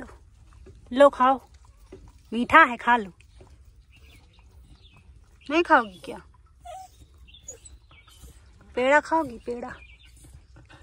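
A dog whines nearby in short, high, wavering cries.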